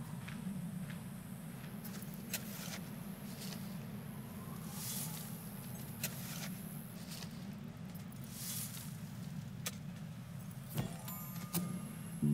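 Blades clash and strike in sharp, repeated hits.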